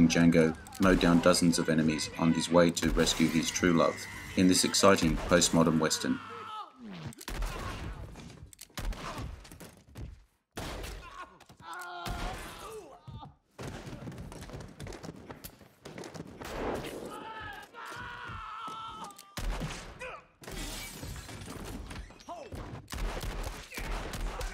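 Gunshots ring out loudly, one after another.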